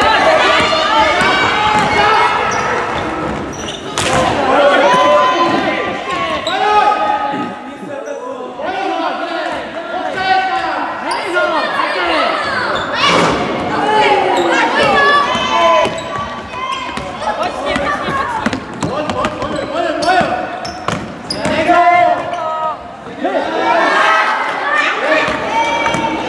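Children shout and call out in a large echoing hall.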